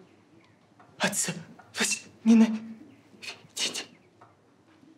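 A woman speaks softly and slowly, close by.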